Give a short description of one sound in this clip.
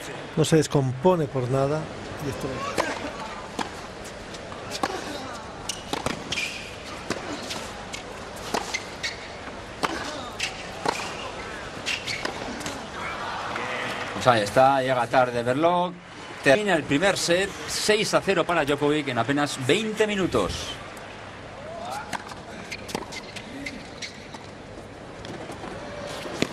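A tennis ball is struck hard by rackets and bounces on a hard court in a rally.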